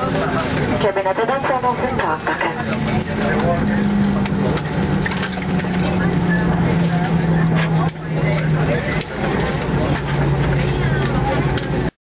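The jet engines of an airliner hum at low power as it taxis, heard from inside the cabin.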